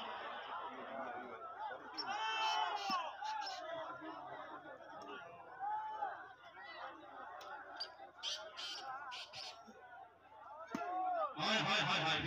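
Young men call out to each other across an outdoor court.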